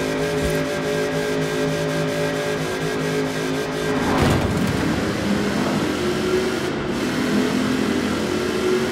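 A powerful car engine roars at high speed, drops in pitch, then revs up again, echoing as in a tunnel.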